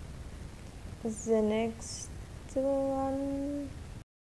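A young woman sings into a microphone, holding long notes.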